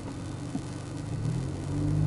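A car engine revs up as the car pulls away.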